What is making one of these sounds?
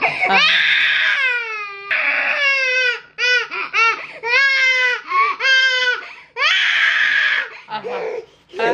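A young woman shrieks and squeals loudly in pain, close by.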